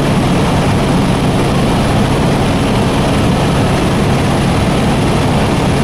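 A helicopter's engine and rotor drone loudly and steadily from inside the cabin.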